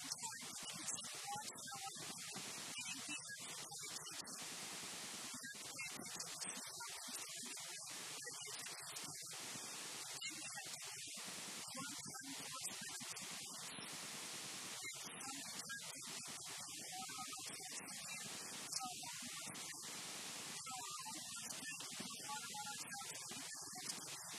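A woman speaks calmly and steadily into a microphone.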